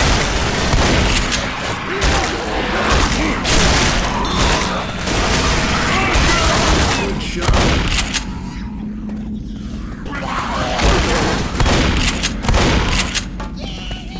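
A shotgun fires loud, echoing blasts in quick succession.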